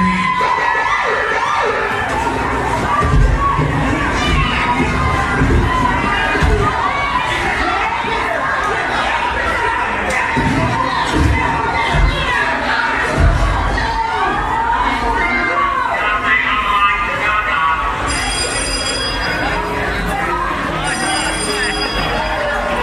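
Loud dance music with a heavy beat plays through big loudspeakers in a large echoing hall.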